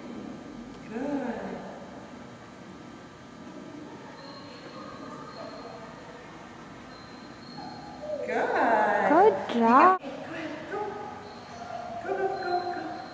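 A woman speaks to a dog in a high, excited voice nearby.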